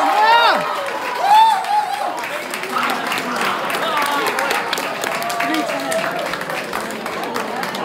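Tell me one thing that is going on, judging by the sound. Young people clap their hands.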